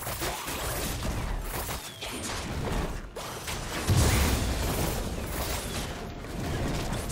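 Magic spells whoosh and crackle in a fantasy fight.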